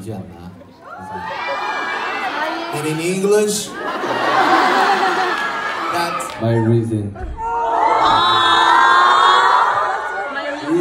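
A crowd of young women screams and cheers loudly.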